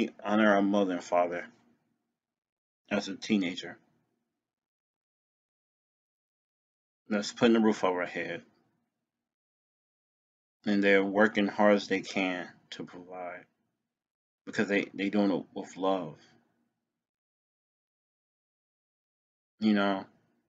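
A man speaks calmly in short bursts close to a microphone, with pauses between.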